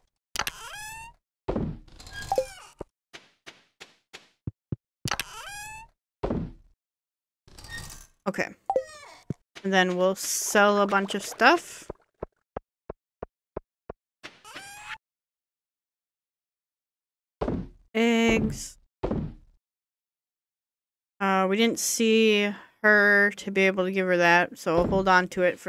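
Soft video game menu clicks and blips sound as items are sorted.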